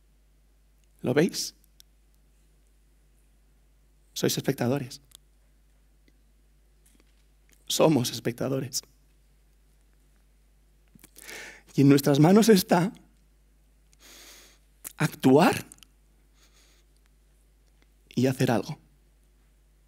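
A young man speaks into a microphone in short bursts, with long pauses between.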